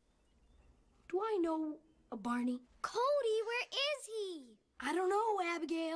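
A young boy speaks casually nearby.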